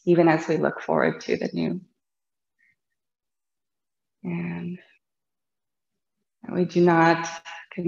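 A woman speaks calmly and softly, close to a microphone, with pauses.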